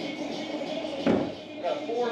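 An axe thuds hard into a wooden target.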